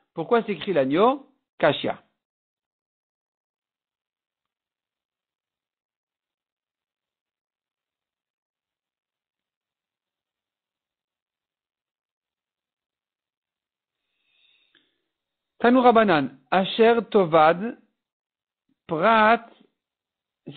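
A man speaks calmly into a microphone, in short phrases with long pauses.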